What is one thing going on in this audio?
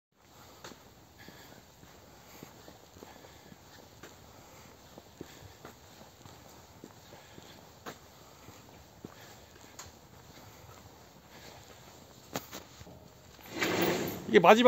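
A man walks on a dirt floor with soft footsteps.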